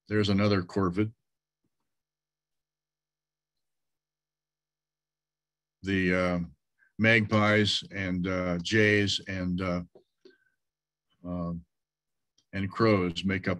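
An elderly man speaks calmly over an online call, pausing between phrases.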